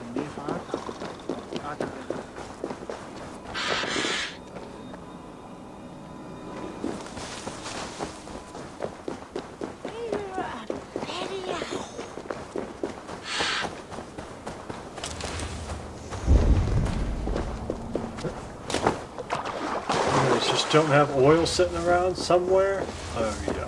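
Footsteps patter quickly over stone and grass.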